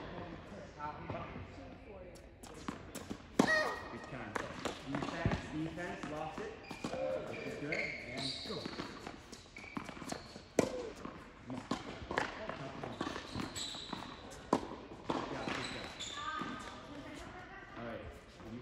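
Tennis balls pop off rackets in a large echoing indoor hall.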